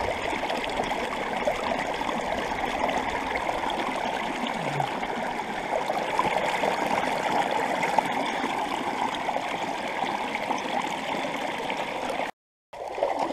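Water rushes and splashes close by.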